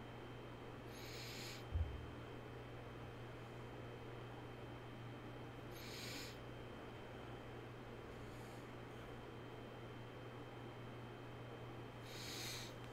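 A man breathes in and out slowly, close to a microphone.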